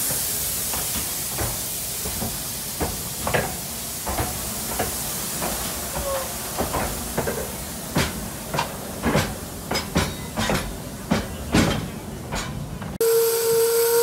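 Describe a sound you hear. A steam locomotive chuffs in sharp, quickening puffs.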